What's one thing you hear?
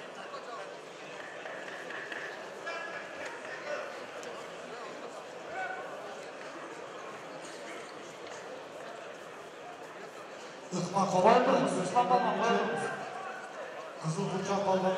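A large crowd murmurs and calls out in an echoing hall.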